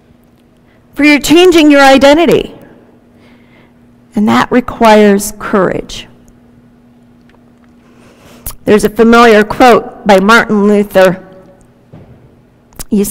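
A woman speaks calmly through a microphone, with pauses, in an echoing room.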